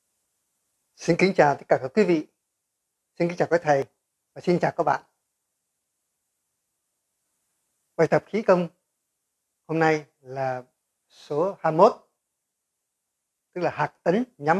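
An elderly man speaks calmly and close into a microphone, in short bursts with pauses.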